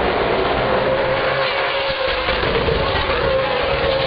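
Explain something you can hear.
A race car roars past up close.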